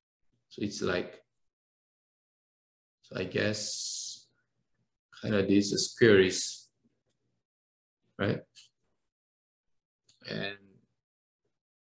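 A young man speaks calmly into a close microphone in short phrases.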